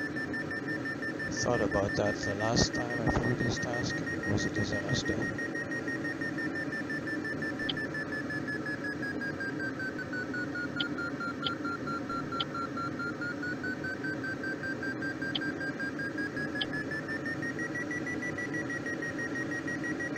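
A glider's variometer sounds a steady tone that slowly dips and rises in pitch.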